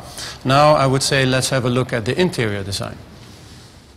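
A man speaks calmly to the listener, close to a microphone.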